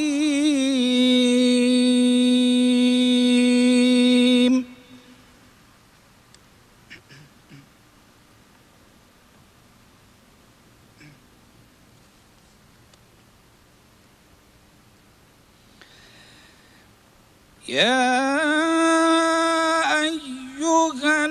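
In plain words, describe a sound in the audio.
An older man chants in long, drawn-out melodic phrases through a microphone, with a long pause between them.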